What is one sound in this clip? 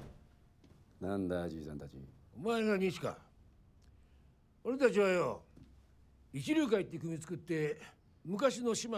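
An elderly man speaks in a low, gruff voice.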